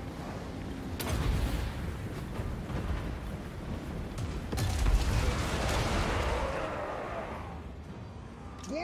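A loud battle rumbles with crashes and booming blasts.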